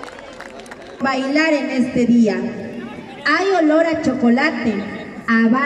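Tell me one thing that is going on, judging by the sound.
A woman close by speaks loudly with animation.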